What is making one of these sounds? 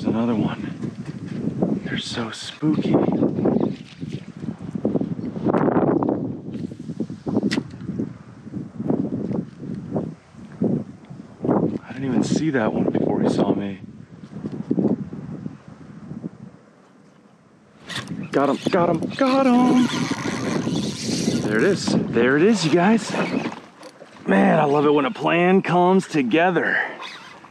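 A man talks calmly and steadily close to the microphone.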